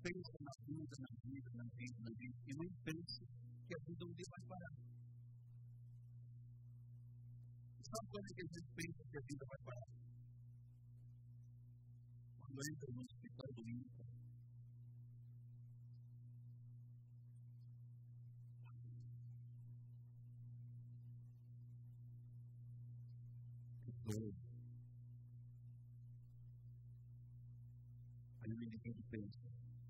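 A man speaks with animation through a microphone, with long pauses.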